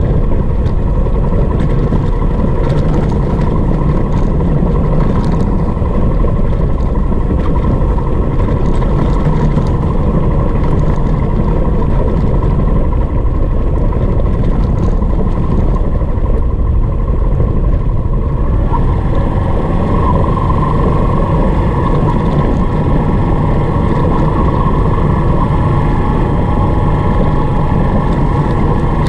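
Wind rumbles loudly past the rider.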